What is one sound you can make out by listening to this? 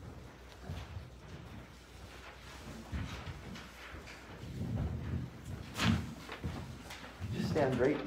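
A microphone bumps and rustles as it is handled up close.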